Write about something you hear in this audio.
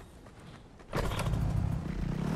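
A motorbike engine starts up and roars.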